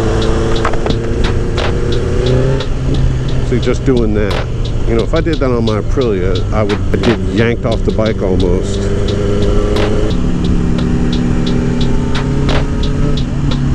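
A motorcycle engine hums steadily, rising and falling in pitch as it speeds up and slows down.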